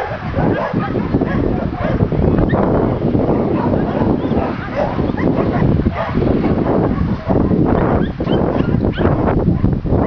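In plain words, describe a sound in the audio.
A young woman talks softly and affectionately to a dog up close.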